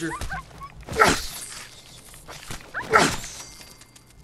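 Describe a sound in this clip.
A rifle fires loud shots.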